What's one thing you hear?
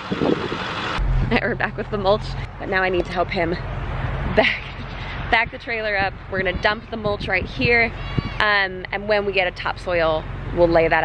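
A woman talks with animation close to a microphone, outdoors.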